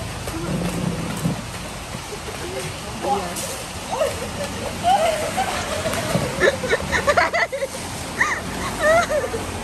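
Footsteps splash on wet pavement.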